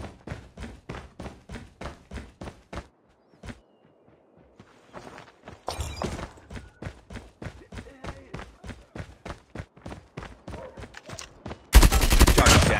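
Quick footsteps thud steadily as a soldier runs.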